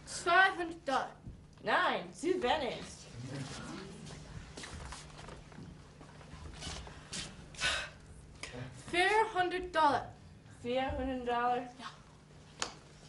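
A young man speaks theatrically on a stage, heard from a distance.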